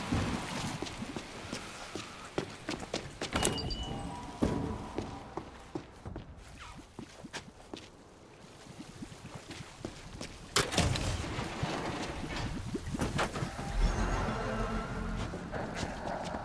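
Footsteps scuff on concrete.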